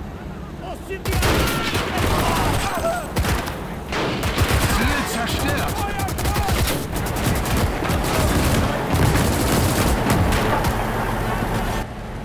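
Rifles and machine guns fire in a rapid, crackling battle.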